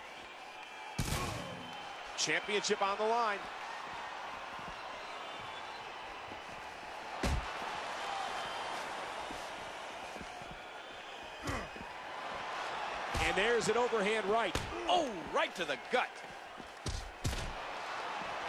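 Bodies slam down hard with heavy thuds.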